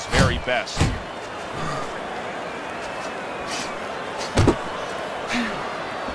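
Punches thud against a boxer's body.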